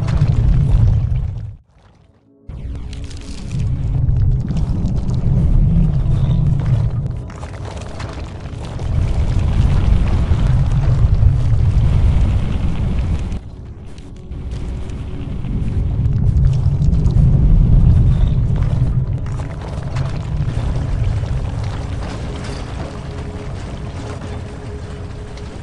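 Game music plays with a deep, pulsing beat.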